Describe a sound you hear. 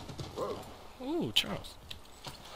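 A horse whinnies nearby.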